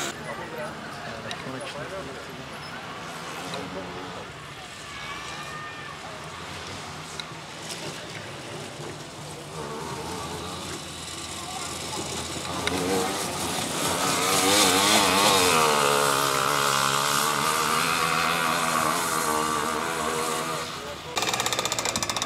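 A buggy engine roars and revs, rising and falling in pitch.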